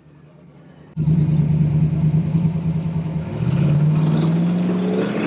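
An engine idles with a deep, rough rumble.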